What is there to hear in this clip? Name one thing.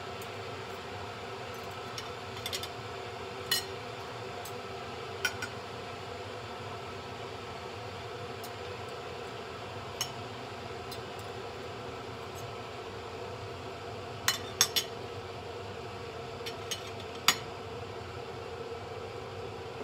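Metal cutlery clinks against a ceramic plate.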